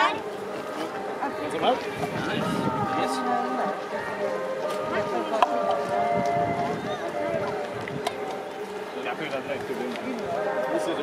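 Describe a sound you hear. Several adults talk at once, close by, outdoors.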